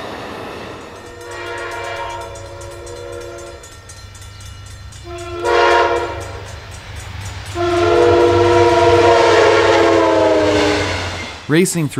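A locomotive horn blares in several long blasts.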